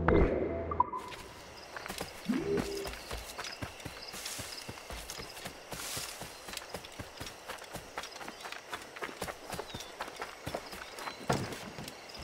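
Footsteps run quickly over grass and dirt.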